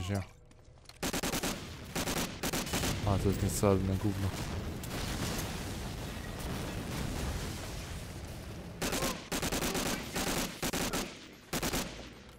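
A rifle fires in rapid bursts of loud shots that echo.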